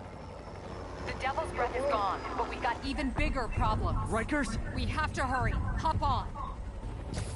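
A young woman speaks urgently, close by.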